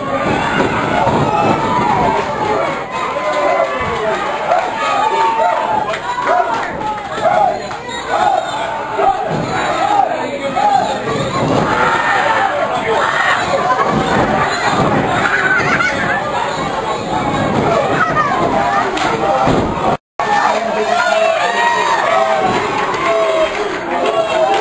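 A crowd chants and cheers loudly in an echoing hall.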